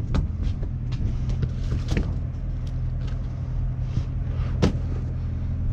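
Balls knock and clatter against one another as hands drop them into a plastic holder.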